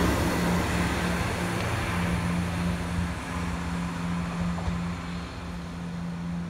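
A diesel train engine rumbles and hums steadily as the train pulls away.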